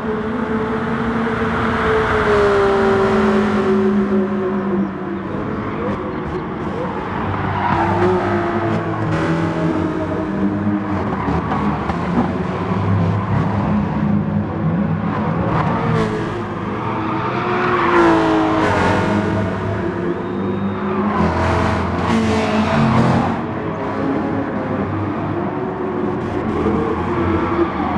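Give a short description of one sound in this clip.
Racing car engines roar and rev, rising and falling in pitch as the cars speed past.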